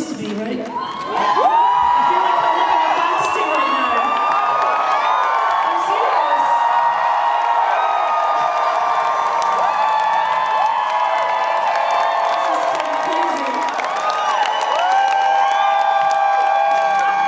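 A crowd cheers and whistles loudly close by.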